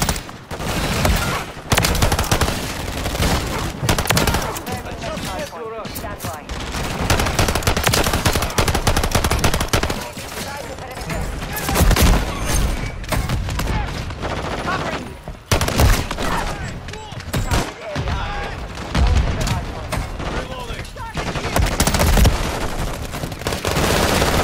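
Rapid gunfire cracks and bursts in close, loud volleys.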